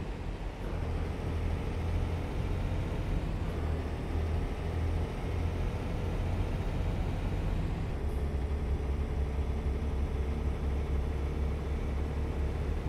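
A truck engine rumbles with a steady low drone.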